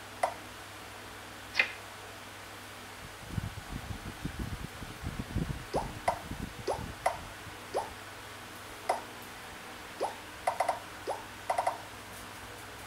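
A tablet game makes short, bright bouncing blips.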